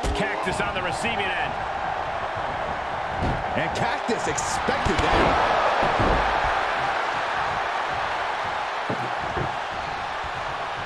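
A large crowd cheers and roars loudly in a big arena.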